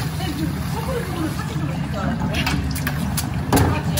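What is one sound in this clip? Water splashes and drains through a strainer.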